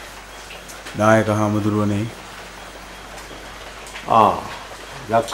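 An elderly man speaks calmly and slowly nearby.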